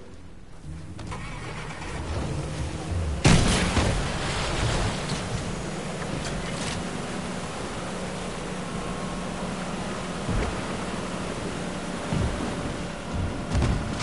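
Water splashes and churns around a speeding boat.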